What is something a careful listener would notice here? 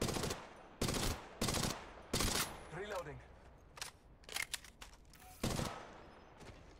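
Gunshots blast loudly in single bursts.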